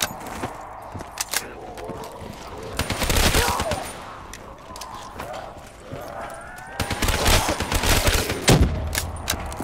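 A gun fires in rapid bursts, echoing.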